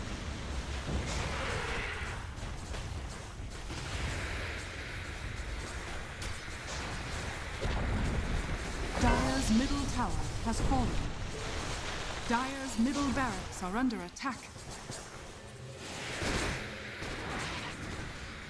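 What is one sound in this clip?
Game battle effects clash and crackle.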